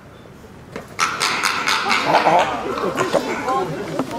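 A red panda calls out.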